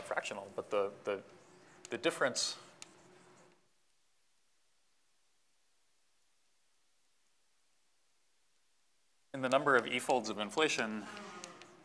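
A man lectures calmly through a microphone, pausing in between.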